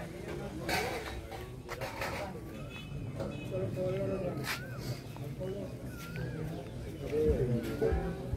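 An elderly man recites a prayer aloud outdoors.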